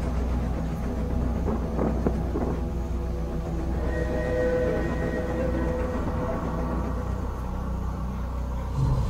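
A steam locomotive rumbles low and steady close by.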